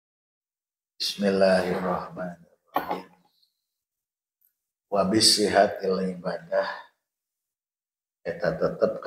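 An elderly man speaks calmly into a microphone, in short phrases with pauses.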